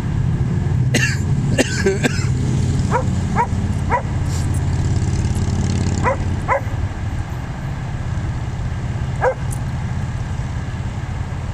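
Dogs growl and scuffle as they wrestle.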